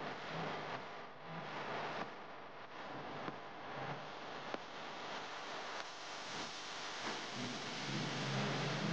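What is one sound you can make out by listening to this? Wind rushes loudly past a moving vehicle outdoors.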